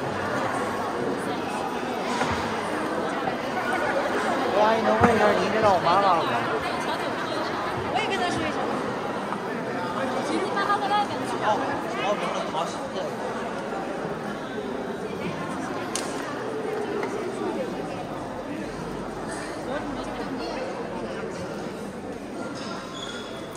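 A crowd of people chatters and cheers close by.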